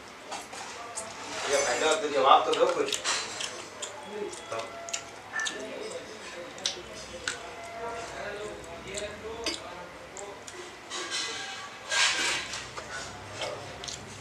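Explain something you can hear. A man chews food close to a microphone.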